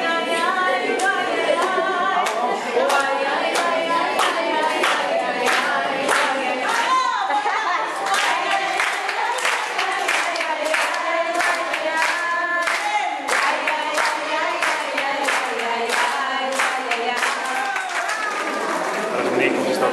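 Several people clap their hands in a steady rhythm.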